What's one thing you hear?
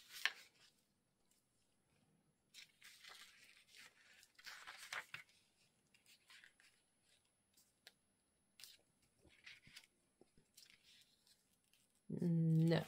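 Paper rustles and slides under hands close by.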